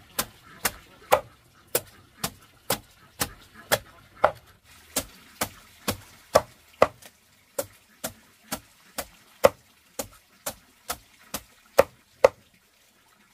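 A knife chops rhythmically through a moist plant stem on a wooden board.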